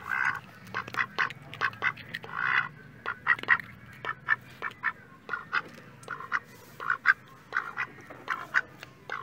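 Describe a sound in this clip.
A duck's bill clicks and snaps as it nibbles.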